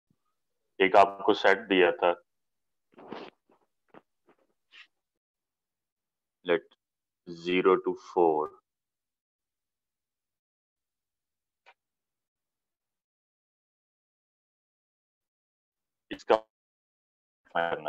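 A young man speaks close to a phone microphone, in short bursts with pauses.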